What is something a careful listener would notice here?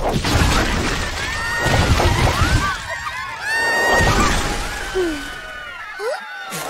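Children shout and cry for help.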